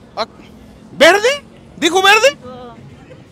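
An elderly woman shouts with high, excited cries.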